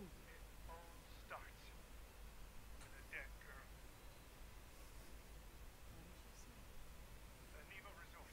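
A woman speaks softly into a phone.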